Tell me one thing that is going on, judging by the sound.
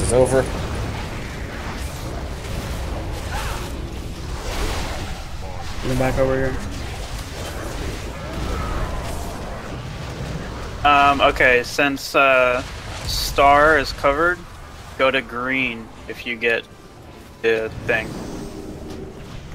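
Magic spells crackle and whoosh during a fantasy battle.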